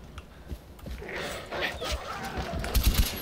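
A wolf snarls and growls while attacking.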